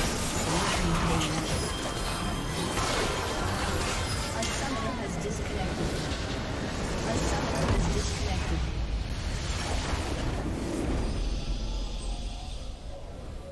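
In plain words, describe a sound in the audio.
Game spell effects crackle and whoosh in a busy battle.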